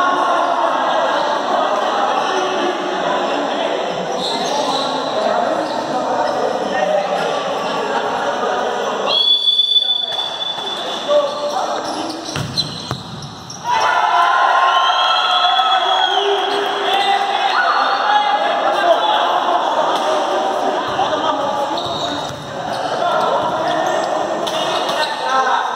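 A crowd of spectators chatters and calls out in an echoing indoor hall.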